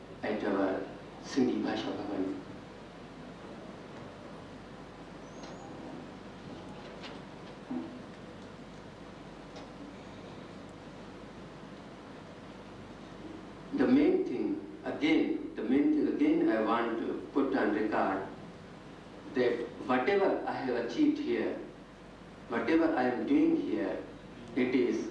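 A man speaks calmly through a microphone, with a long pause.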